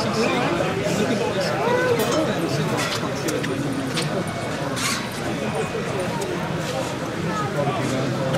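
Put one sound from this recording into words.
A model train clatters and clicks along its track.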